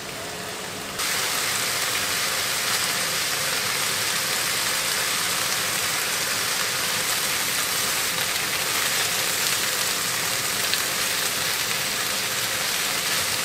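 Meat sizzles steadily in a hot pan.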